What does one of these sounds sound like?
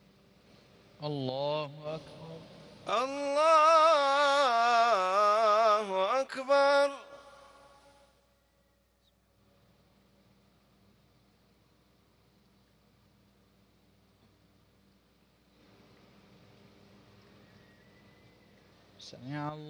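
A man chants in a long, drawn-out voice through loudspeakers in a large open space.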